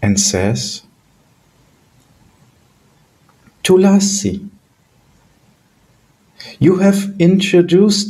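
A middle-aged man speaks calmly over an online call, in bursts with pauses.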